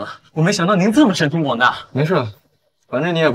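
A young man speaks with surprise, close by.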